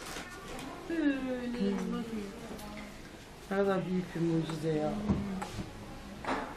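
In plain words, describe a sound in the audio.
A middle-aged woman speaks softly and emotionally nearby.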